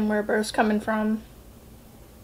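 A young woman speaks briefly and calmly, close to a microphone.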